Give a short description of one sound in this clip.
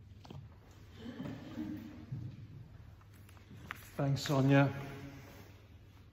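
A middle-aged man speaks calmly close by, in a large echoing hall.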